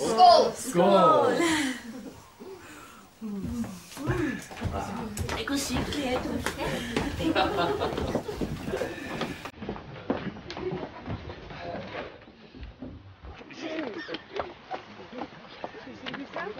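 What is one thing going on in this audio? A group of people talk and cheer together in a room.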